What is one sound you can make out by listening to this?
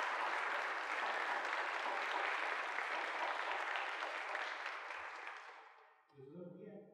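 An audience claps and then the applause fades away.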